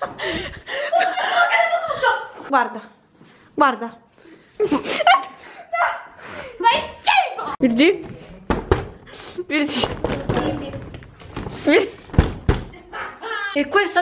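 Young women talk close by with animation.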